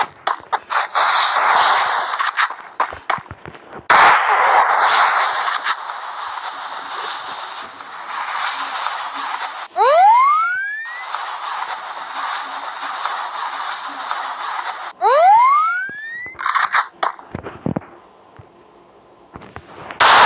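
Footsteps run across grass.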